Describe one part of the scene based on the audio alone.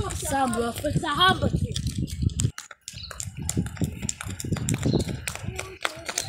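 Children's footsteps pound on a paved road.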